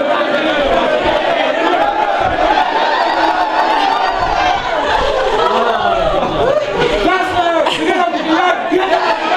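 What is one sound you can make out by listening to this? A large group of young people shout and cheer loudly close by.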